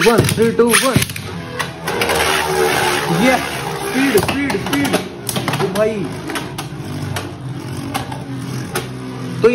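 Spinning tops whir and clatter against each other in a plastic arena.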